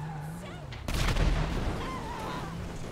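A car crashes with a heavy metallic thud.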